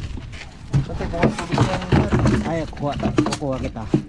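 Water and eels splash as a bucket is poured into a box.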